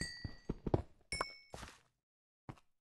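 A pickaxe chips at stone until the block cracks apart.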